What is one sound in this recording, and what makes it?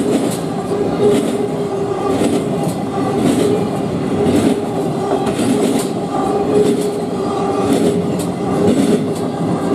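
Train wheels click rhythmically and squeal on the rails.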